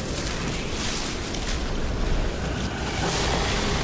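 Wind gusts hard and rushes through leaves.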